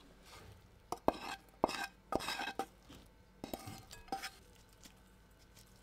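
Fried food is scraped from a pan into a glass bowl.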